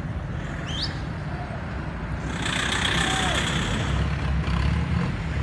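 A pickup truck drives past close by.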